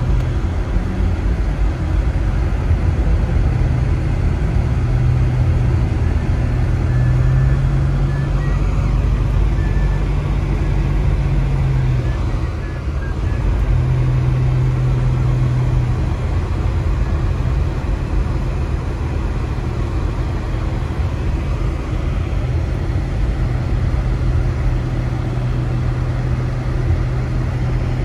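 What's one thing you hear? Tyres crunch and hiss over snow.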